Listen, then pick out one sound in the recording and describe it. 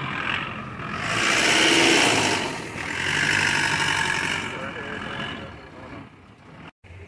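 A truck engine runs close by.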